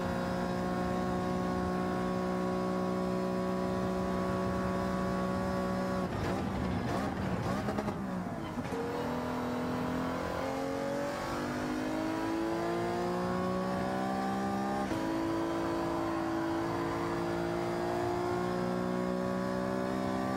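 Other racing car engines drone close by.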